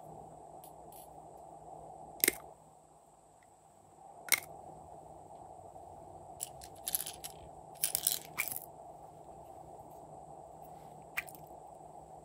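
Small plastic pieces click and tap as they are dropped.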